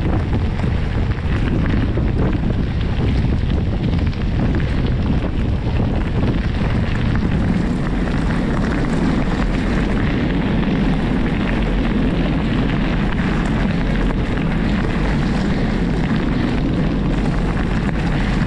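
Wind buffets the microphone.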